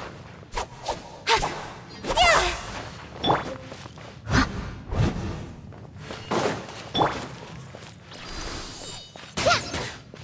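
A sword slashes through the air with swooshing strikes.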